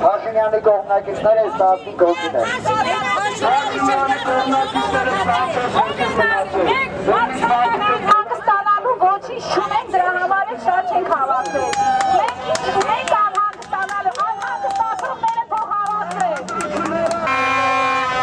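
A man shouts loudly through a megaphone.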